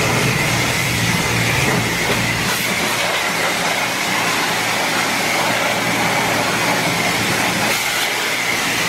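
A pressure washer sprays water hard against a car, hissing steadily.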